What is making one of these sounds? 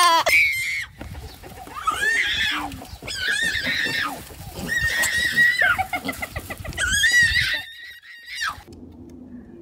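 Piglets squeal.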